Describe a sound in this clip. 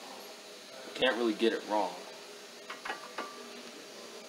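Metal brake parts clink as they are handled.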